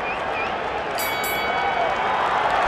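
A bell rings to start a round.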